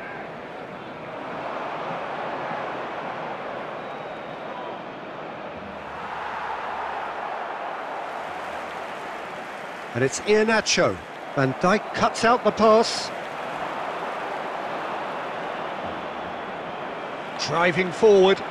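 A large stadium crowd roars and murmurs steadily in the distance.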